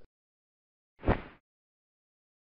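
Wings flap quickly as a bird flies off.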